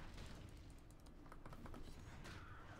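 Metal weapons clash and strike in quick hits.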